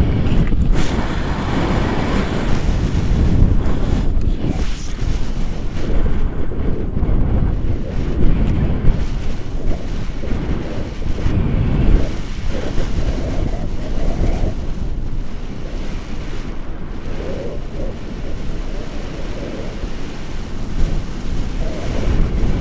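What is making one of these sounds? Wind rushes loudly and steadily over the microphone.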